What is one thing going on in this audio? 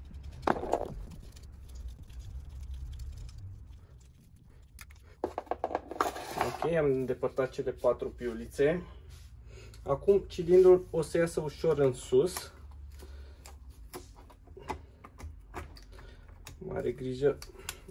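Metal engine parts clink and knock as they are handled.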